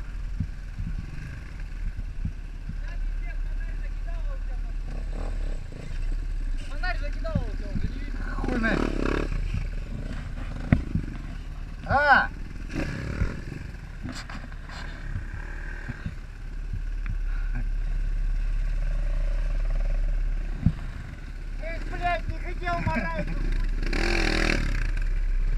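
A dirt bike engine idles and revs up close.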